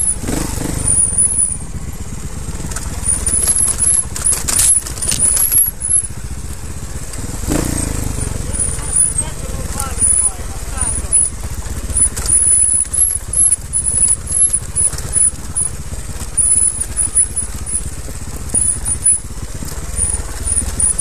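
A dirt bike engine buzzes and revs up and down close by.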